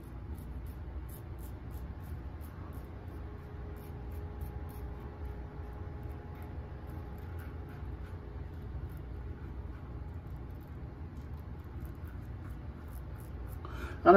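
A razor scrapes through stubble in short, repeated strokes close by.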